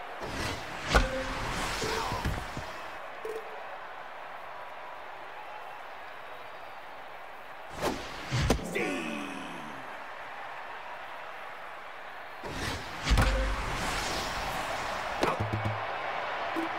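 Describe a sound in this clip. A large crowd cheers loudly.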